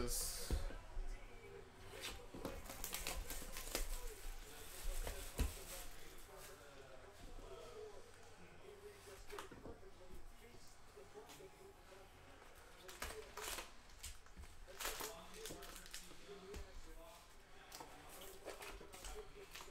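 Foil card packs rustle and crinkle as hands handle them.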